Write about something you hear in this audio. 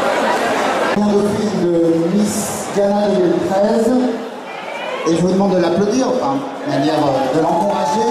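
A man speaks into a microphone, heard over loudspeakers in a large hall.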